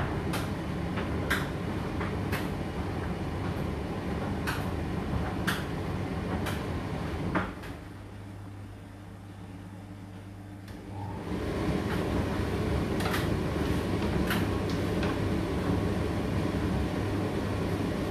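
A condenser tumble dryer rumbles and hums as its drum turns.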